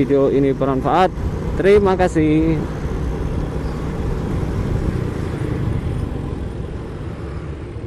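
Other motorbikes pass by on the road.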